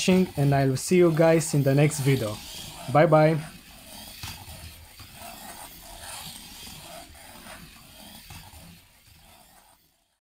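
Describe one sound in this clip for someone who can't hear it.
A small robot car whirs as it drives around a track.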